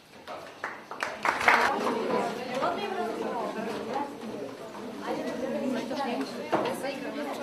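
A crowd of young women chatter and cheer loudly in an echoing room.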